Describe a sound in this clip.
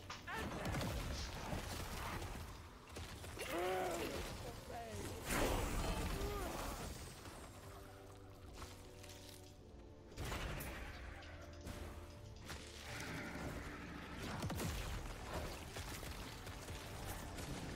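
Game spells crackle and boom with bursts of magic.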